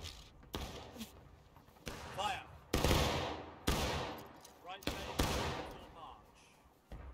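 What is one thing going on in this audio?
Rifle shots boom repeatedly and echo across open ground.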